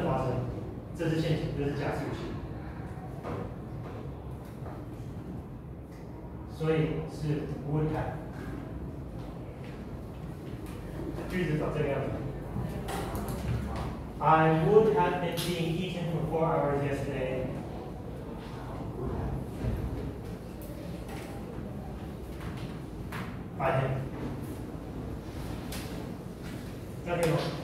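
A man lectures calmly in a room with some echo.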